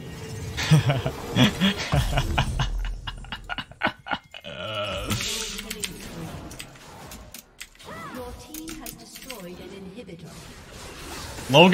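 Magic spell effects crackle and whoosh in a video game.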